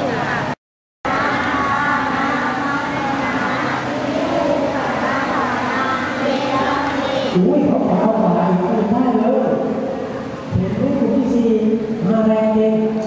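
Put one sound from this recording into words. A man speaks calmly through a microphone and loudspeakers.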